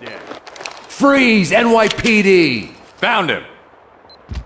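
A man shouts with alarm.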